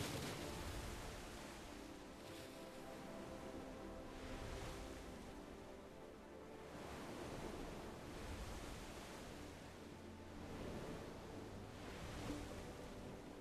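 Waves crash and splash against a wooden ship again and again.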